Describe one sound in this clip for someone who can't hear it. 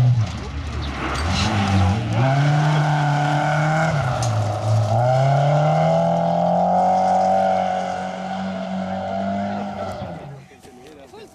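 A rally car engine roars loudly, revving up and down through the gears as it speeds past.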